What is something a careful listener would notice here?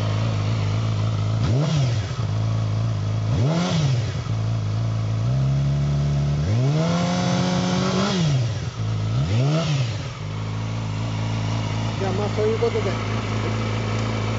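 A motorcycle engine idles with a deep, steady rumble.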